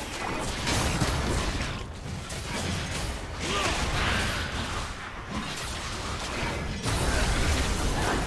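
Game spell effects crackle and whoosh.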